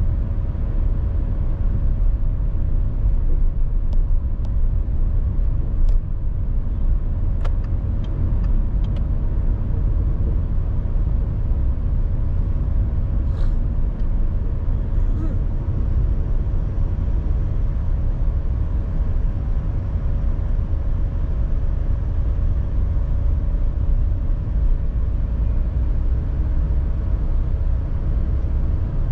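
Traffic rumbles along a city street.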